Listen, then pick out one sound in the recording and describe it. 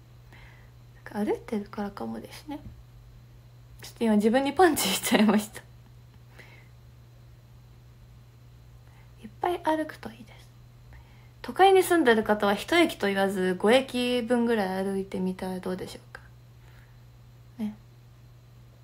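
A young woman talks softly and casually, close to a microphone.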